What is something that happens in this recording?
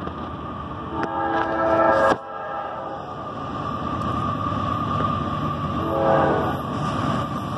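A train horn blares loudly, twice.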